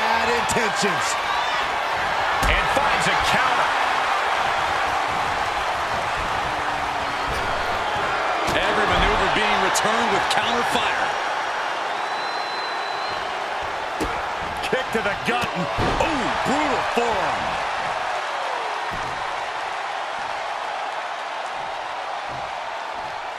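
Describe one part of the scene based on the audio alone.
A large crowd cheers and roars throughout, heard in a big arena.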